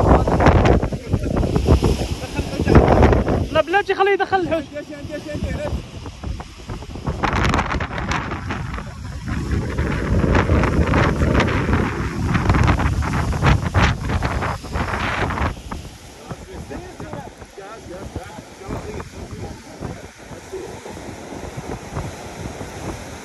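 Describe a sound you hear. Waves crash and surge against rocks below.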